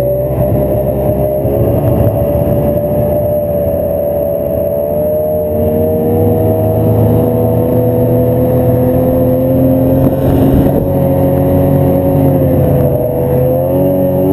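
A snowmobile engine drones steadily at close range, its pitch rising and falling slightly.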